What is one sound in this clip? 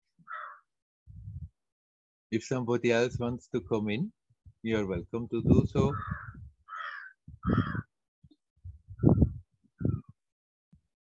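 A middle-aged man talks warmly over an online call.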